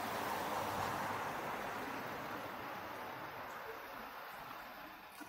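A tram rolls past close by with a steady hum that slowly fades.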